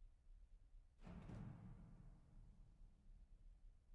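A piano plays a single chord that rings out and slowly fades.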